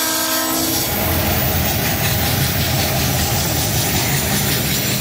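A freight train rumbles and clatters steadily past, close by.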